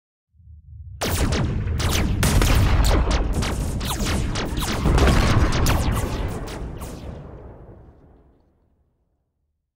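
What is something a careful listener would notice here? Laser guns fire in rapid crackling blasts.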